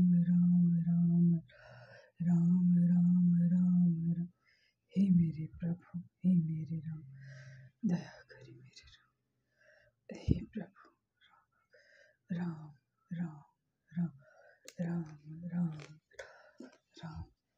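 A woman speaks steadily and close to a microphone.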